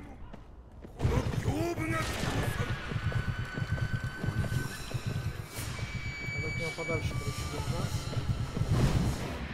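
A horse gallops heavily over the ground.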